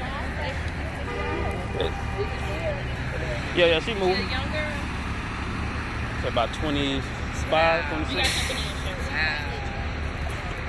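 Men talk nearby in short bursts.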